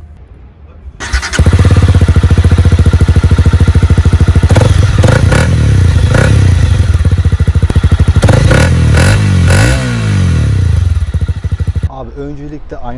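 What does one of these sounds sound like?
A motorcycle engine starts up and rumbles loudly close by.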